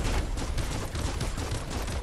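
A giant creature roars.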